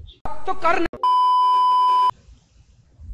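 A steady high-pitched test tone beeps.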